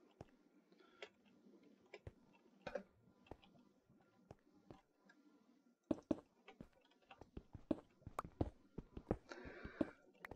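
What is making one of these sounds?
Footsteps tap on stone floor.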